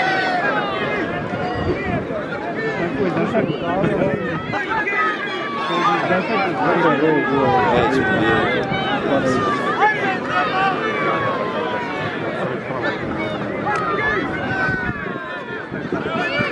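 A large outdoor crowd of men chatters and shouts excitedly.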